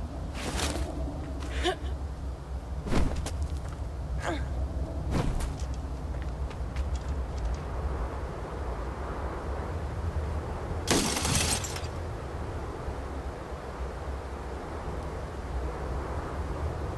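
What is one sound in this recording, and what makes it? Wind howls steadily outdoors.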